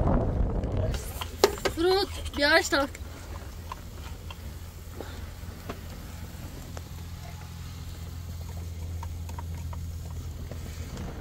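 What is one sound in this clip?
A gas burner hisses steadily.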